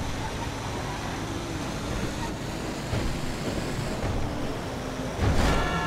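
A large truck engine rumbles steadily as it drives.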